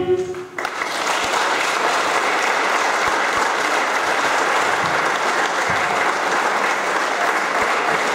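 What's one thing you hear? A large audience applauds loudly in a hall.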